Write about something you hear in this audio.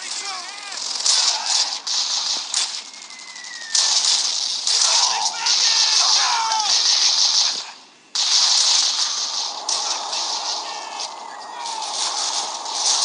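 Rapid gunfire crackles loudly in bursts.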